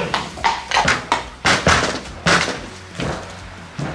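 A horse's hooves thud on a hollow wooden ramp.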